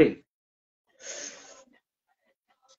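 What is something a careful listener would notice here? A teenage boy exhales smoke with a breathy puff.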